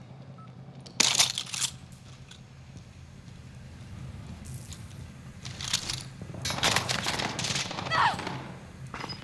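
Gun mechanisms clatter and click as weapons are picked up and swapped.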